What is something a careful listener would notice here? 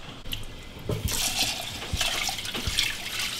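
Water runs from a tap into a metal pot.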